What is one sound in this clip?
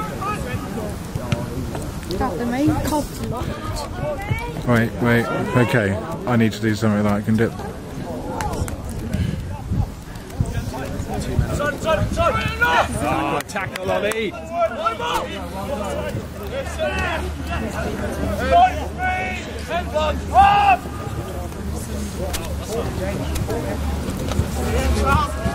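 Young men shout and call out across an open playing field.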